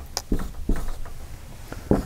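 A marker squeaks faintly on a wall.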